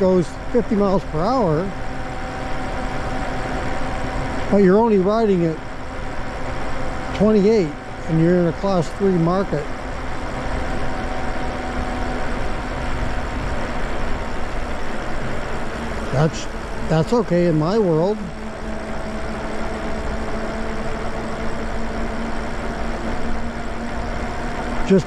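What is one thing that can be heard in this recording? An electric motor hums with a steady whine.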